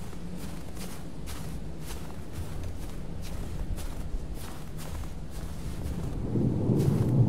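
Footsteps run quickly over snowy ground.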